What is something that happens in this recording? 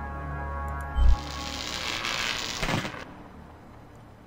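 A metal switch clicks.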